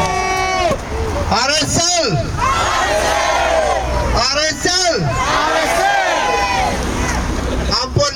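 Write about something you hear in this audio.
A man speaks loudly through a megaphone outdoors.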